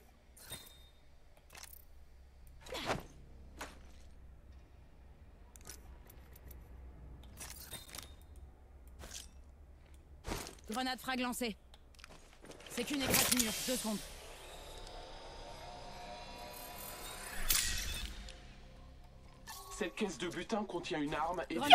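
Video game sound effects click and whoosh in short bursts.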